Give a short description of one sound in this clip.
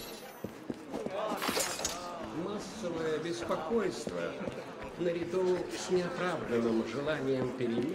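A crowd of men and women murmurs nearby.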